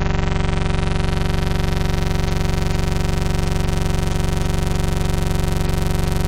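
A steady, harsh electronic buzzing tone plays.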